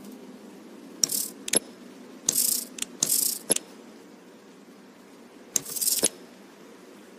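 Heavy rings click and whoosh as they turn.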